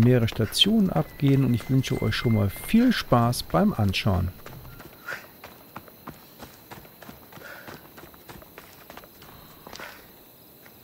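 Footsteps patter quickly on stone and dirt.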